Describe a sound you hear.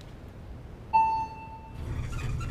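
A lift bell chimes once.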